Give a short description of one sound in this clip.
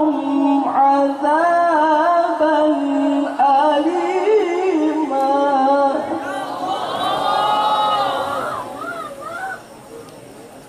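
A young man chants melodiously into a microphone over loudspeakers.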